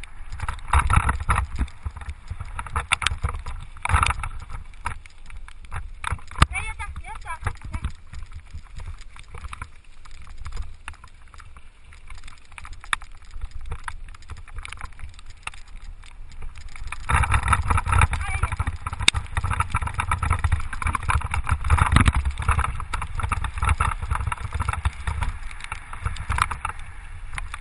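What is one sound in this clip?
Tyres rumble and crunch over a gravel track.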